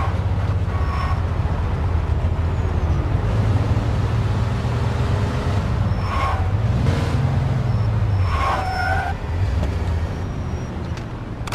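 A car engine roars steadily as a car drives fast.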